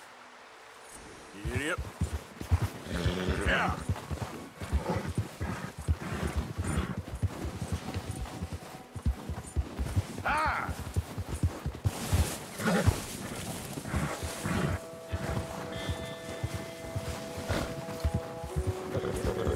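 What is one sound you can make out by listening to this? A horse gallops through deep snow with muffled hoofbeats.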